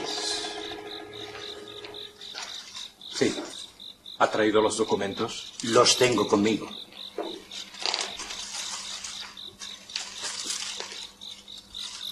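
An elderly man answers in a calm voice.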